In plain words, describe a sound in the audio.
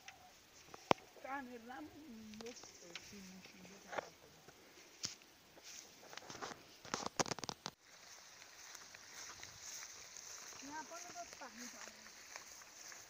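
A child speaks nearby.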